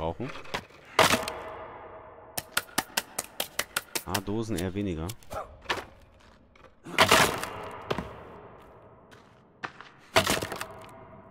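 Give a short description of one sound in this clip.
A wooden stick strikes something with sharp, hard thuds.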